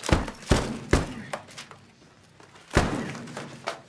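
Thuds knock sharply on a desk.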